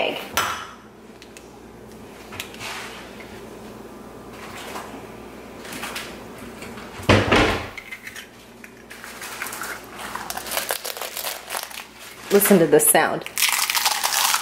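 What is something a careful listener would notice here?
An eggshell cracks against a bowl's edge.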